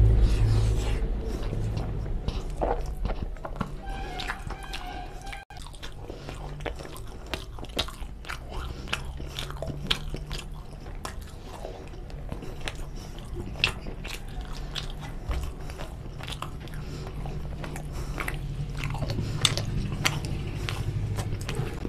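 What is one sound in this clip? A man chews food loudly and wetly, close to a microphone.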